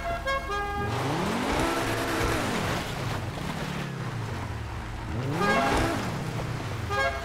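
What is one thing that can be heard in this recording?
A sports car engine revs up and down.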